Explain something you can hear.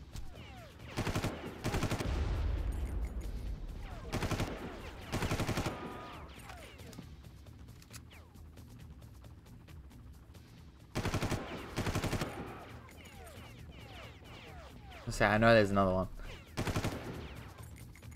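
Rapid gunfire bursts in loud, echoing volleys.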